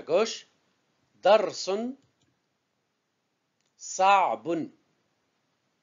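A middle-aged man speaks slowly and clearly into a close microphone, pronouncing words syllable by syllable.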